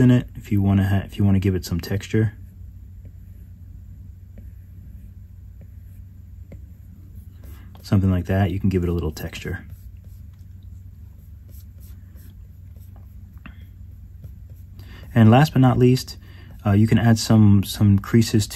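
A stylus taps and slides on a glass tablet surface.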